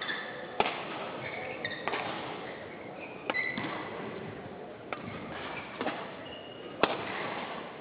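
A shuttlecock is struck sharply back and forth by rackets in an echoing hall.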